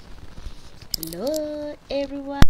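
A young girl speaks in a high, drawn-out voice close by.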